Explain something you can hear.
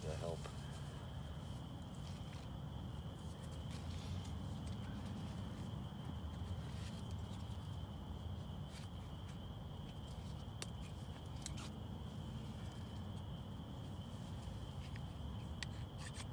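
Small bones click and scrape as hands sort through dry soil.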